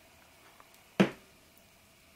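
A plastic bottle is set down on a hard table with a single knock.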